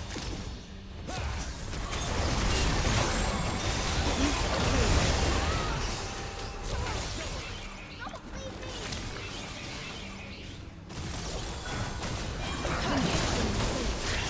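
Magic spells crackle and burst in a fast video game battle.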